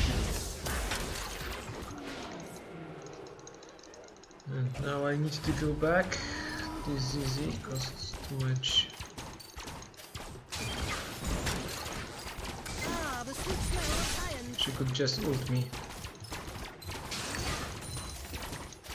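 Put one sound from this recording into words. Video game spell and combat sound effects clash and whoosh.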